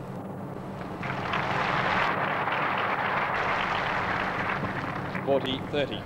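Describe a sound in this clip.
A large crowd applauds loudly, then fades.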